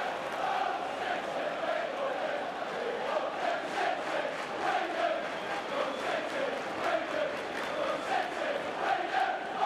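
A stadium crowd claps in rhythm.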